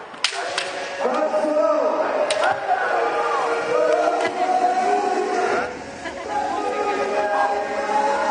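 Men shout loud drawn-out cries through their masks.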